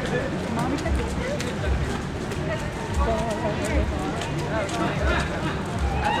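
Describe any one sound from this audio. Footsteps thud on a muddy trail as runners jog past.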